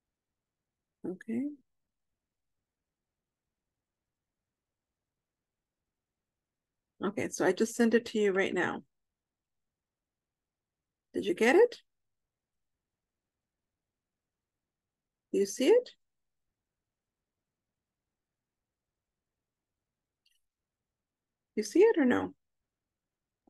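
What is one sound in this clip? A woman speaks calmly over an online call, in short bursts with pauses between them.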